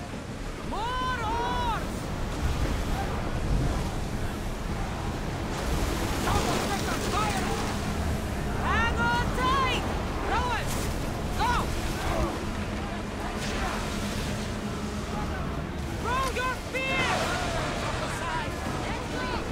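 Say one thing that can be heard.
Stormy waves crash and roar around a ship.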